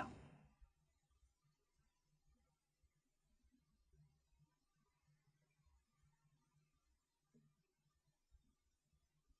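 An elderly man speaks calmly and slowly into a microphone.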